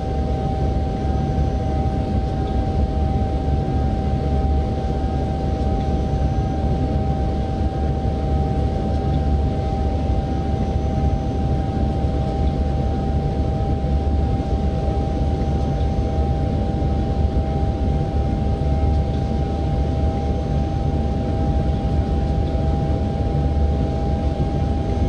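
An electric train motor hums with a steady whine.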